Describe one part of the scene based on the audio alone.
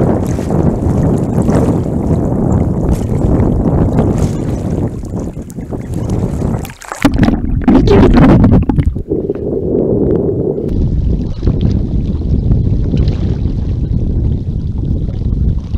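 Waves slosh and splash close by in open water.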